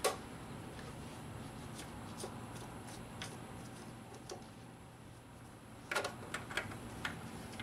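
Plastic parts click and rattle under working hands.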